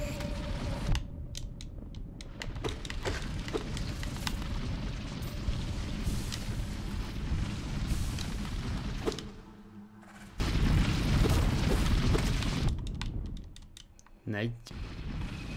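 Video game sound effects chime and slash.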